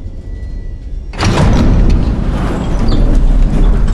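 A heavy sliding door rumbles open.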